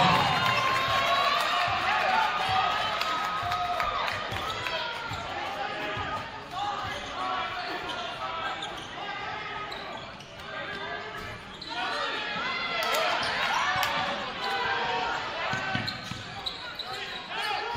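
Sneakers squeak sharply on a court.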